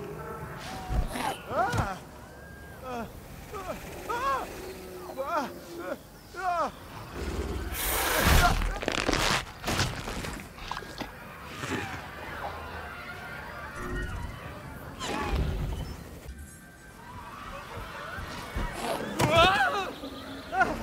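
A man screams in terror.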